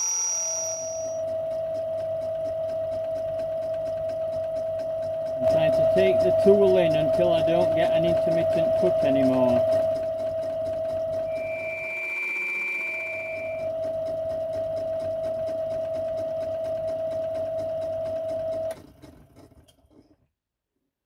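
A lathe motor hums steadily, then winds down and stops.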